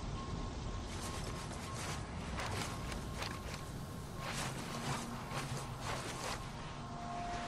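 Footsteps clang on a metal ladder during a climb.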